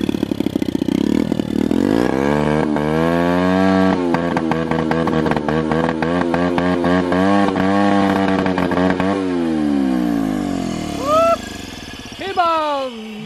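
A small motorcycle engine runs loudly, revving up and down.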